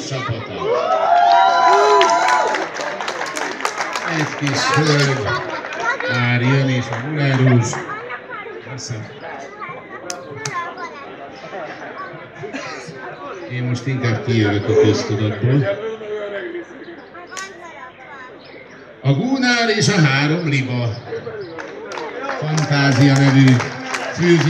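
A man speaks into a microphone over loudspeakers outdoors, announcing in a lively voice.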